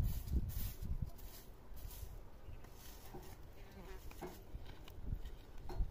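Hands scrape and dig at loose dirt.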